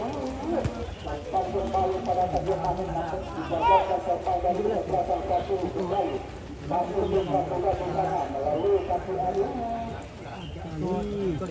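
Boys shout and call to each other outdoors.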